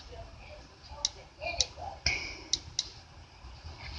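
Fingertips tap lightly on a touchscreen.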